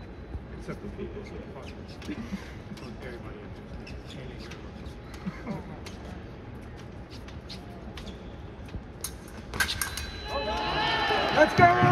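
Footsteps shuffle and stamp on a hard floor.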